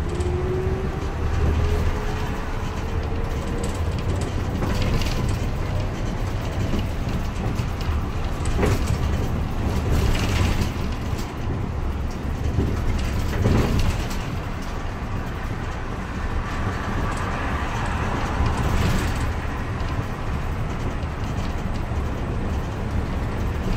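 The bus cabin rattles and knocks now and then.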